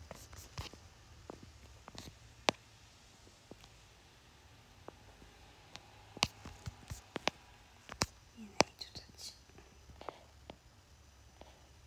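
Fingers tap and click on a phone close by.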